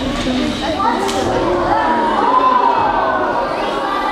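Children's voices chatter and call out.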